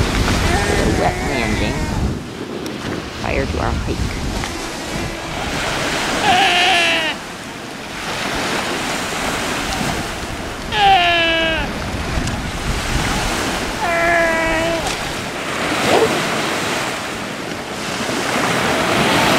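Wind blows across the open shore.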